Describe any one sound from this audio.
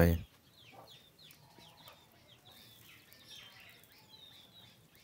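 Fish sizzles faintly on a grill over hot coals.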